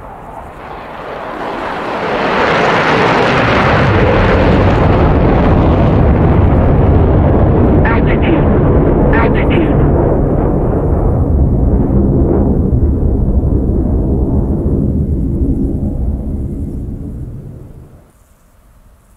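A fighter jet roars loudly overhead, then fades into the distance.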